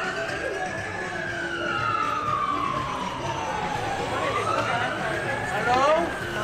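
A busy street murmurs with passing pedestrians' voices.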